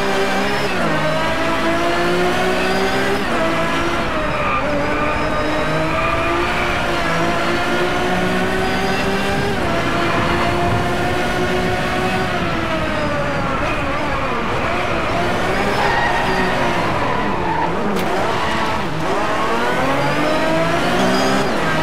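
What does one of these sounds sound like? A racing car engine revs up through the gears.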